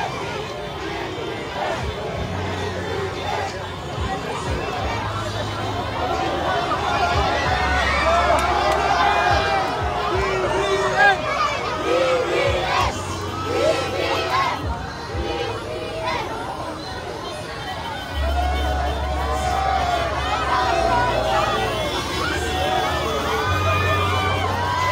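A large crowd outdoors cheers and shouts excitedly.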